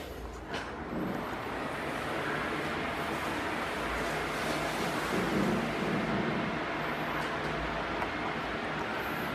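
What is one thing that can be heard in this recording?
Electric fans whir steadily.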